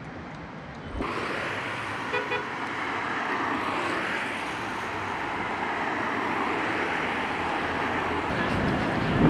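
Cars drive past on a wet road.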